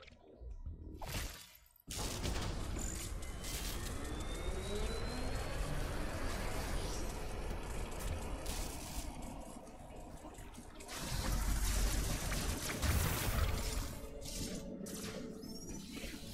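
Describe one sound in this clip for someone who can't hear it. Video game sound effects rumble and clang over music.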